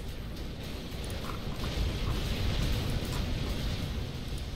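Low booming battle explosions rumble steadily.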